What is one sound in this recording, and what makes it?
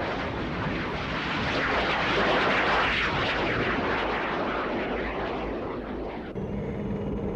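A jet engine roars loudly.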